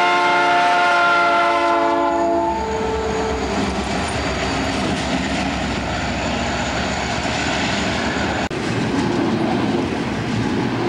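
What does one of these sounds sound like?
A freight train rumbles and clatters past close by.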